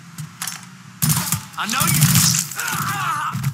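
Gunshots crack loudly, with a ringing echo.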